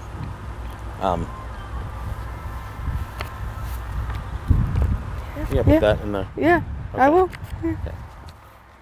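A man speaks calmly close to a microphone.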